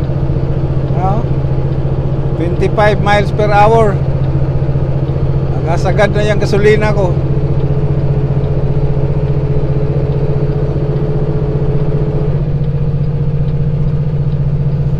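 A truck's diesel engine drones steadily while driving.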